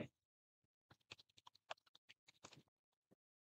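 Calculator keys click softly.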